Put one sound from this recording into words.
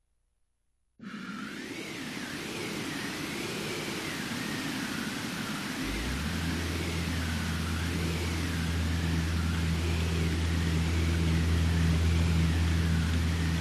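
A strong wind roars and swells over the sea.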